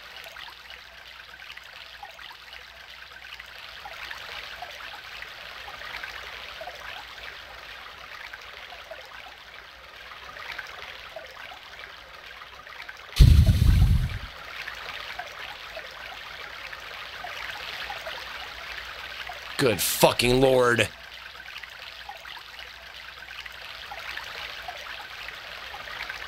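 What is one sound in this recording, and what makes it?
A man speaks quietly close to a microphone.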